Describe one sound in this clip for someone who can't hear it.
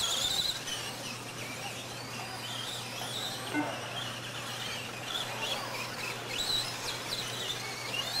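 Model car tyres crunch and bump over dirt.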